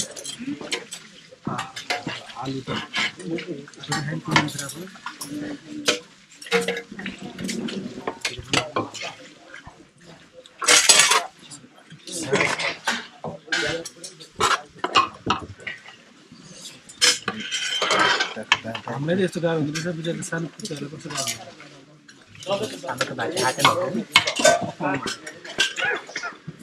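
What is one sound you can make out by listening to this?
Metal ladles clink against pots and plates.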